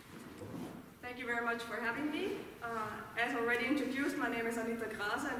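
A young woman speaks calmly through a microphone in an echoing hall.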